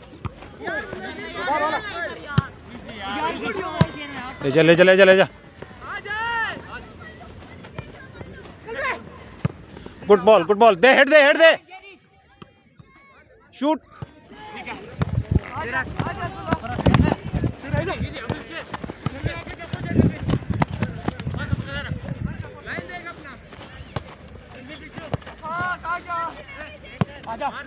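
A football thumps off a foot as it is kicked.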